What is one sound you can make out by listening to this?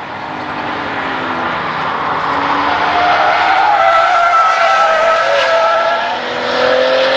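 A sports car engine roars loudly as the car approaches and passes close by.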